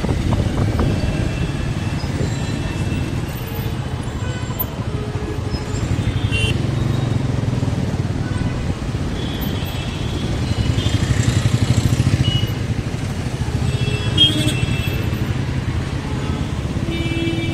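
Vehicle horns honk now and then.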